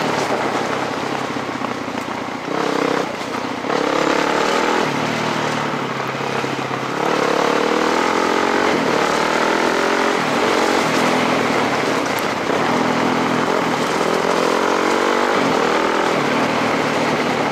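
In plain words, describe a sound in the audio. Tyres crunch steadily over loose gravel.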